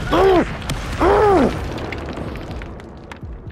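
Magic spells crackle and burst in a fight.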